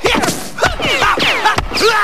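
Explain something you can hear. A tennis ball bounces off a racket.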